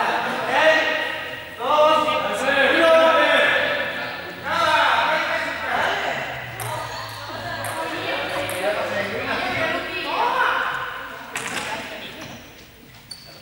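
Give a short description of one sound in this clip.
Sneakers squeak and patter on a hard floor.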